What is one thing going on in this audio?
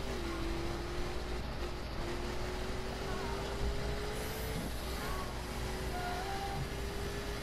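A race car engine roars steadily as it speeds up.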